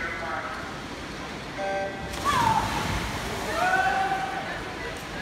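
Swimmers splash through water in a large echoing hall.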